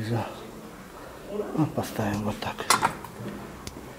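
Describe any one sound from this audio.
Porcelain dishes clink together softly.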